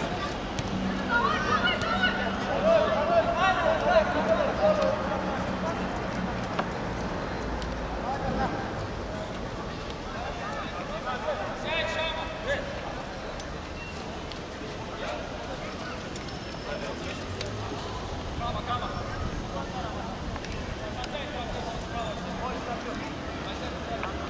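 Young men shout across an open football field.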